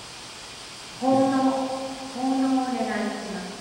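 A man chants a sung prayer through a microphone in a large echoing hall.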